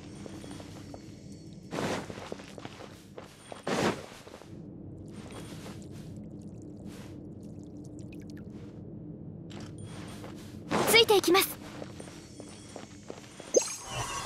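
Light footsteps patter quickly on dirt.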